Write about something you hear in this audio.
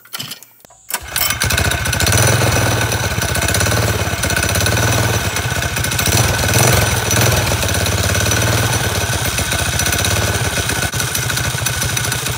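A small engine starts and runs loudly at a steady idle.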